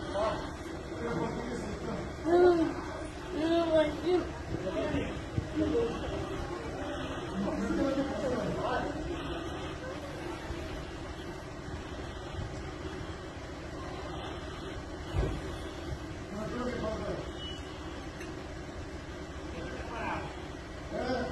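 A man shouts in the distance, outdoors.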